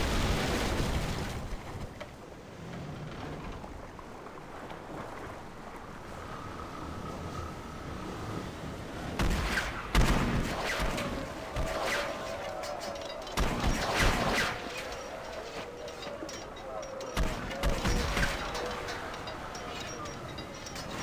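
Waves splash against a sailing ship's hull.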